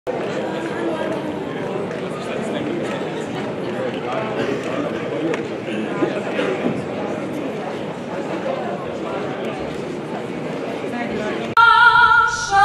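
A crowd murmurs and chatters indoors.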